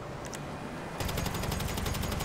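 Rapid gunshots rattle close by.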